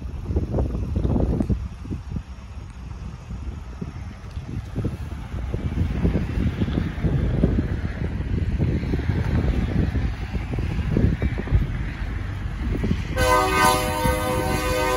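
A locomotive engine rumbles as it approaches.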